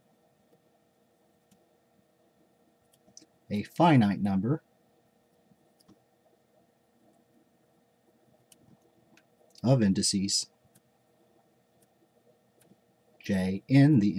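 A marker squeaks and scratches softly across paper.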